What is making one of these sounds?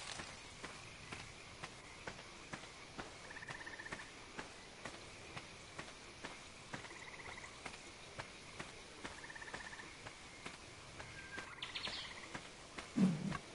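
Footsteps rustle steadily through tall grass.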